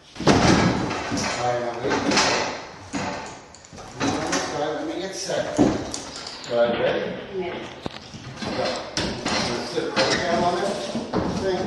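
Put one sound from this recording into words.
A large board scrapes and bumps as it is lifted into place.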